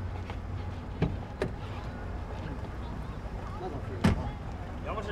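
A car door clicks and thumps shut.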